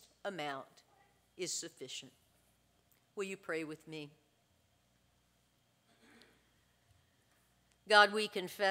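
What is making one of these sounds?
A middle-aged woman speaks calmly into a microphone, with pauses between phrases.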